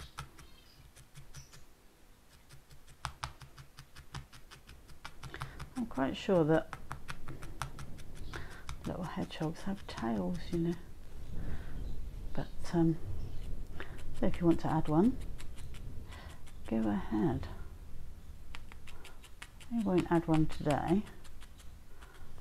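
A felting needle jabs rapidly into wool with soft, quick pokes.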